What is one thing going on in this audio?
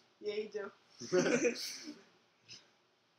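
A teenage boy laughs close to a microphone.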